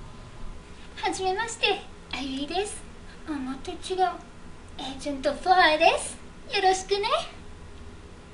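A young woman speaks in a bright, cheerful voice close by.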